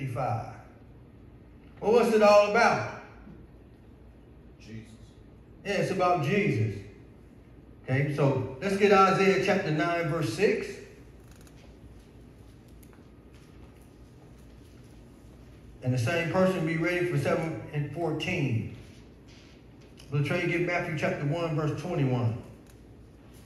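A man preaches through a microphone in bursts, with pauses between phrases, in a reverberant hall.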